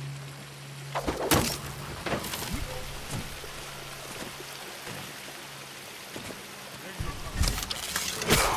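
Footsteps thud on dry ground.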